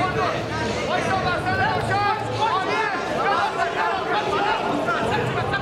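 A large crowd cheers and shouts loudly, echoing in a big hall.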